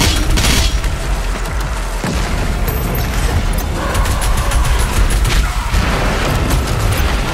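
Guns fire in rapid bursts with loud explosions.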